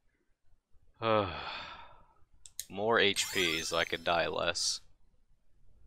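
Chimes ring brightly in a quick rising flourish.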